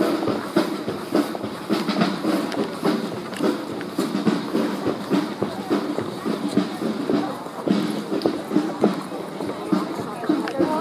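A crowd of onlookers murmurs and chatters nearby.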